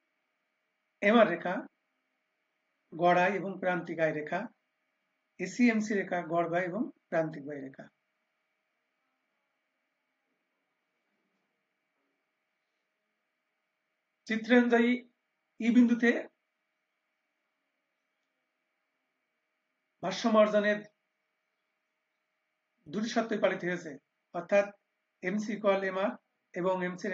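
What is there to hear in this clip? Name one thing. A young man speaks calmly into a microphone in short bursts with pauses, as if over an online call.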